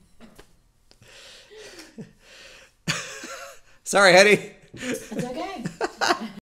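A man laughs heartily close to a microphone.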